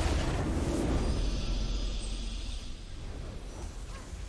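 A triumphant fanfare swells and plays.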